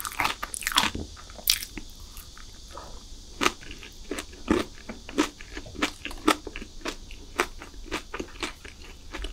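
A young woman chews soft chocolate cake moistly close to a sensitive microphone.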